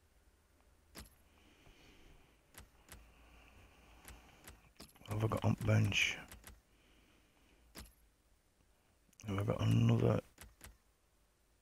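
Short electronic menu clicks tick now and then.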